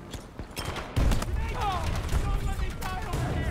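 A loud explosion booms and rumbles close by.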